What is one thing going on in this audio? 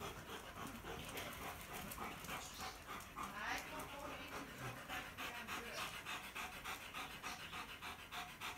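Two dogs growl playfully as they tussle.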